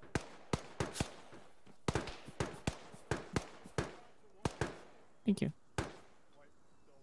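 A gun fires several sharp shots nearby.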